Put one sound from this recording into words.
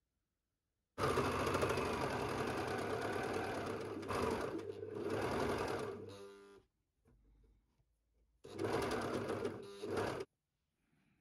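A sewing machine whirs rapidly in bursts as it stitches.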